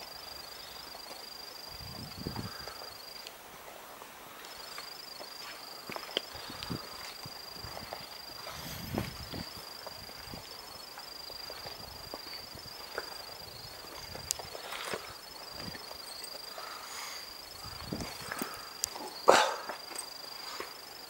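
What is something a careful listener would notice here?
Footsteps crunch and scuff on a rocky dirt trail.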